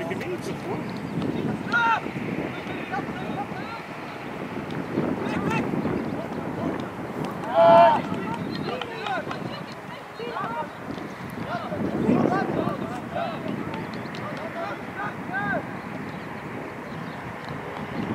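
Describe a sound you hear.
Young male football players shout to each other across an open field.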